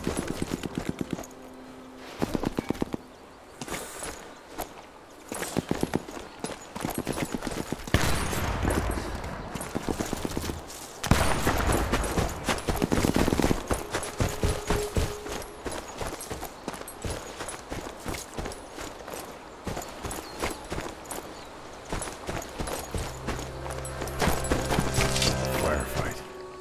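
Footsteps crunch steadily on the ground as a man walks.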